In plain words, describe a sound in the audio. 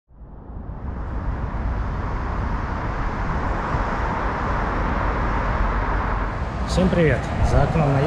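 Wind blows hard against a microphone outdoors.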